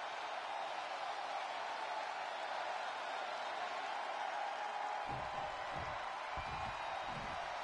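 A large arena crowd cheers and roars steadily.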